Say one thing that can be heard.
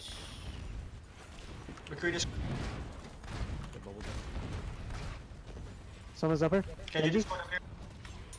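Video game gunfire and ability effects crackle during a fight.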